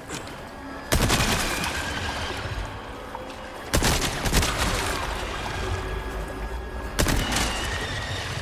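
Water splashes as bullets hit it.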